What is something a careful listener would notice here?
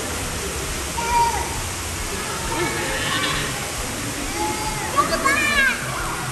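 A young girl squeals and chatters excitedly.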